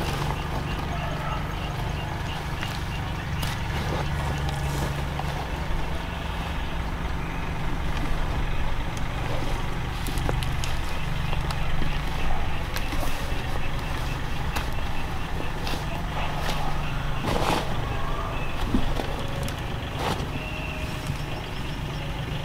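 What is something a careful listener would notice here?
Weeds are pulled from soil with soft tearing and rustling close by.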